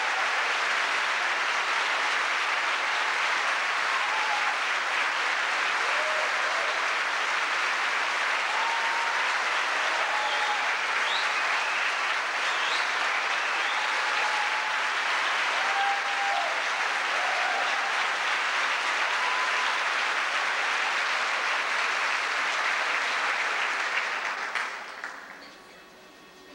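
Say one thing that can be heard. A large crowd applauds loudly, then the applause dies away.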